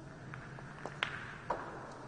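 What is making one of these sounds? A cue stick strikes a ball with a sharp click.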